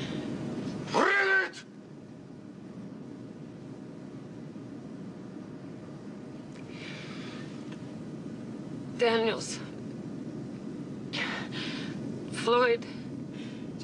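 A woman speaks quietly and anxiously, close by.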